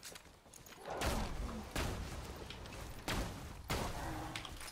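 Explosions boom several times in quick succession.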